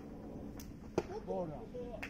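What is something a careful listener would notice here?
A ball smacks sharply into a catcher's mitt.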